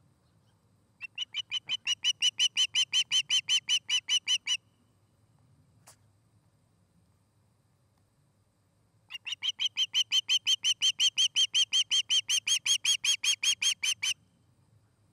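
An osprey calls close by in rapid, shrill repeated chirps.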